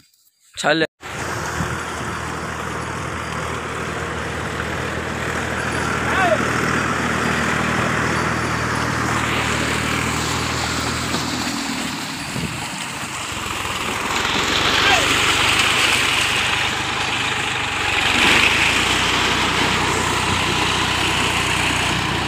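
Cart wheels squelch and splash through wet mud.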